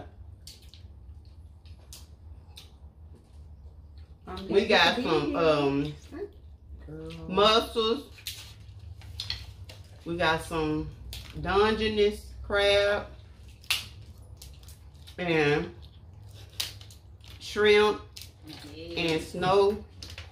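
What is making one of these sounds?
Seafood shells crack and crunch in hands.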